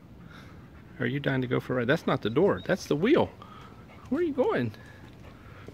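A dog howls and whines up close in short, wavering bursts.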